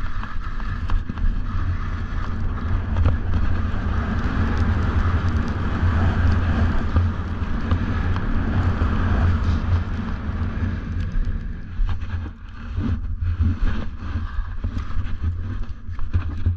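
Wind rushes loudly past, rumbling and buffeting.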